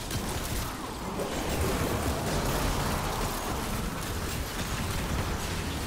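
Electric crackling and blasts of a battle rumble on.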